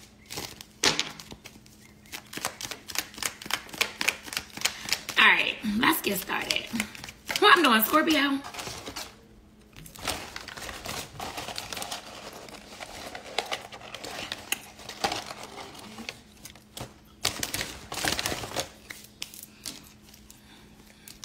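Paper banknotes rustle and flick as they are counted.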